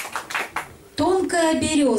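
A woman speaks through a microphone.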